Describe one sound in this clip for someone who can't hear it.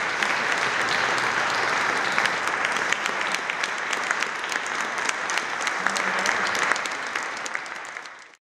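An audience applauds loudly in an echoing hall, fading at the end.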